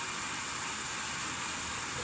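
A toothbrush scrubs against teeth.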